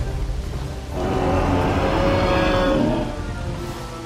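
A large dinosaur bellows loudly with a deep roar.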